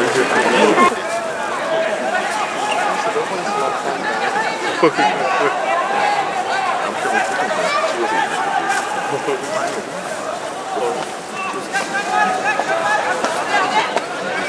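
Young men shout to each other on the field.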